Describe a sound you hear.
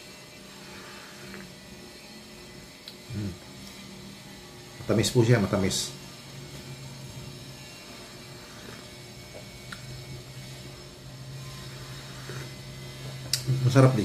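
A man sips a drink from a mug.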